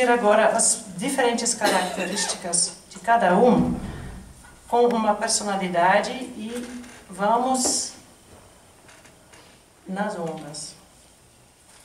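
A woman speaks with animation through a microphone in an echoing hall.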